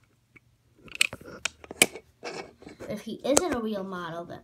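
A toy car clicks and knocks against a hard floor.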